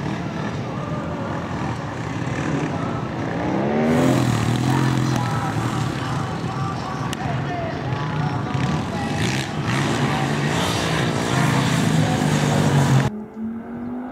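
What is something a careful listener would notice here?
A motorcycle engine revs loudly, rising and falling in pitch.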